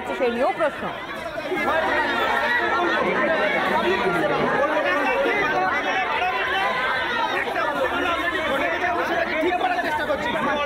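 A crowd of men shout and argue loudly, close by.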